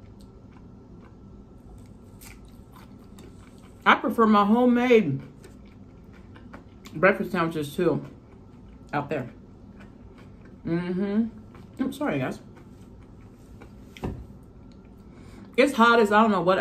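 A woman chews food softly close to a microphone.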